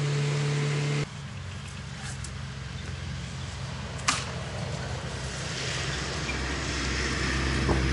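Footsteps rustle through wet grass.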